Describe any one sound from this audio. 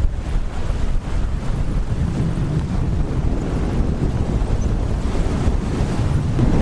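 Fat bike tyres roll and crunch over sand.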